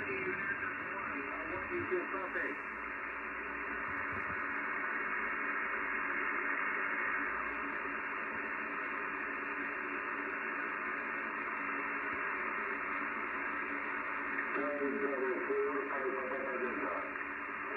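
Warbling, garbled tones come and go through a radio receiver's loudspeaker.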